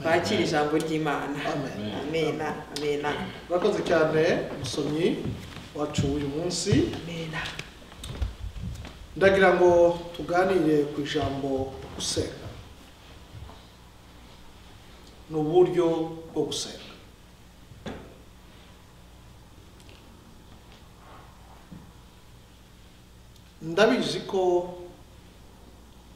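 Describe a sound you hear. A man speaks calmly, with long pauses, in an echoing hall.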